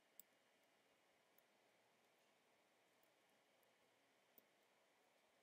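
Soft game menu blips sound as a cursor moves through a list.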